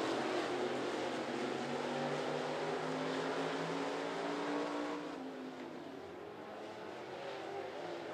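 Race car engines roar loudly, then fade into the distance.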